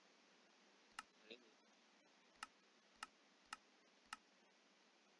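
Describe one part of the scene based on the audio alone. Soft interface clicks sound as menu buttons are pressed.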